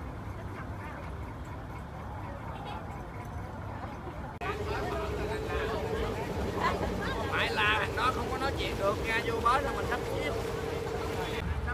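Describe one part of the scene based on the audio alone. People chatter in the background.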